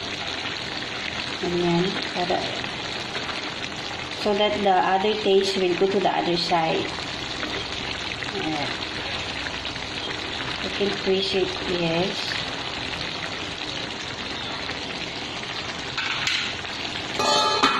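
Food sizzles and bubbles steadily in a hot pan.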